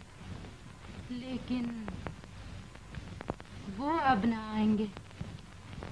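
A young woman speaks briefly and tensely.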